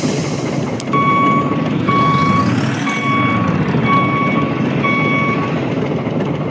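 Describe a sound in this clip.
A truck's reversing alarm beeps in even pulses.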